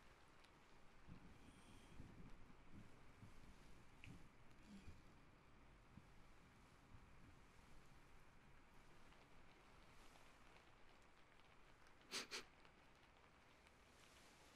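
Hands brush and rustle softly right against a microphone.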